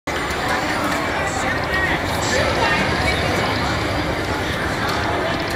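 A slot machine plays jingling chimes and electronic tones as its reels spin.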